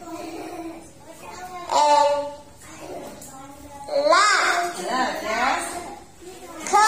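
A young woman speaks clearly and slowly, close by.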